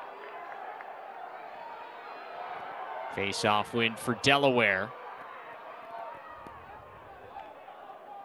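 A crowd murmurs and cheers far off outdoors.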